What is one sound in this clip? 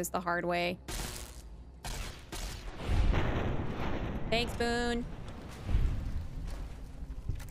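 Gunfire bursts out in short, loud blasts.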